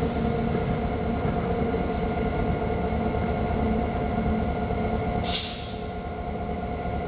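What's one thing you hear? A diesel locomotive engine idles with a steady, deep rumble and hum.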